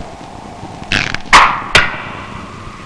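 A bowstring twangs sharply as an arrow is loosed.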